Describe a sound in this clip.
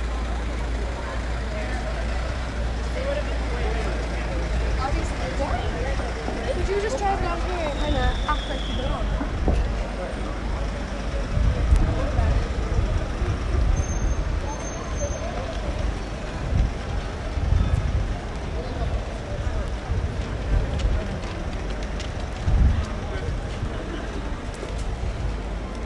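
A crowd of people murmurs and chatters outdoors on a busy street.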